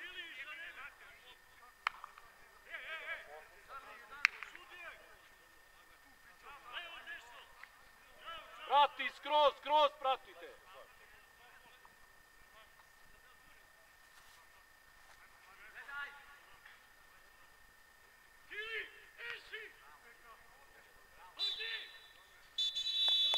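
Young men shout to each other far off across an open field.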